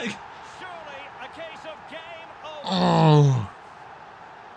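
A young man shouts excitedly close to a microphone.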